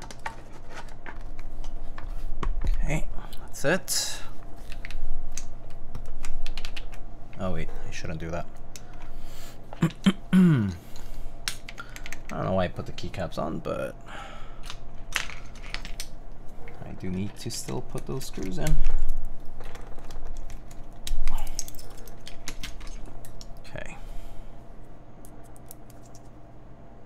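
Keys clack as someone types on a mechanical keyboard.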